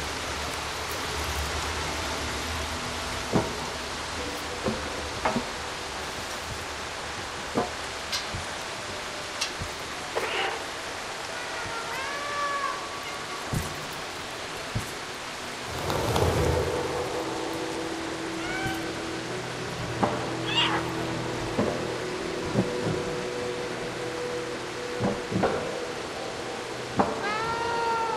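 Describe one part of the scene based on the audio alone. Small cat paws patter softly on the ground.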